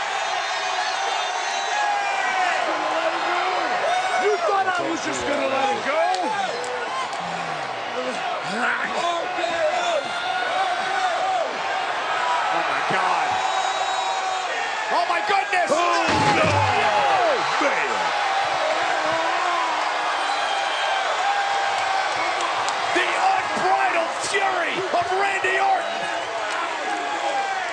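A large crowd cheers and shouts loudly in a big echoing arena.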